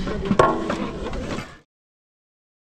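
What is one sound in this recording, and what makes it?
Pots and utensils clatter outdoors.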